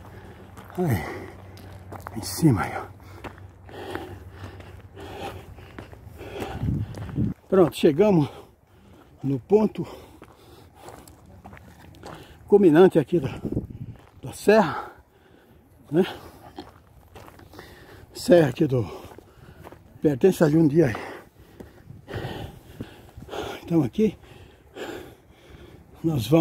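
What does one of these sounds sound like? A man talks nearby outdoors, in short bursts with pauses.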